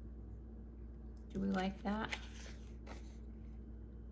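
A stiff paper card rustles as it is picked up.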